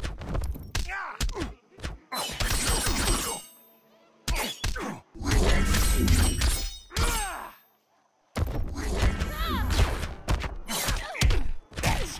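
Punches and blasts thud and crack rapidly in a fight.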